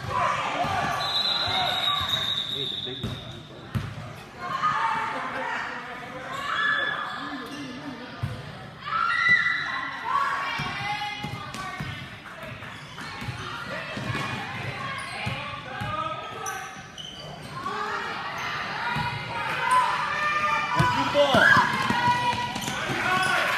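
A crowd of spectators talks and calls out in a large echoing hall.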